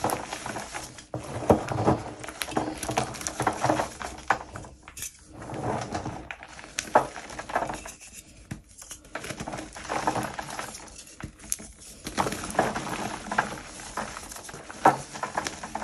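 Fine powder patters and sifts through a wire rack.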